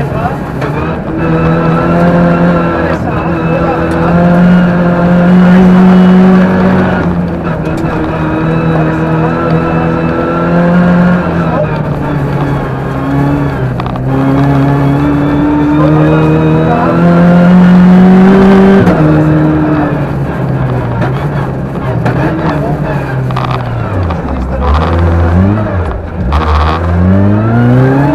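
A rally car engine roars and revs hard, rising and falling with gear changes.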